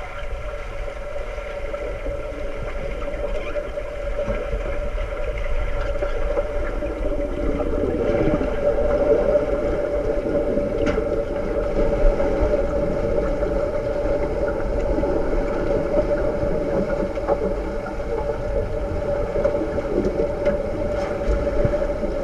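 Swimmers plunge into the water with muffled splashes.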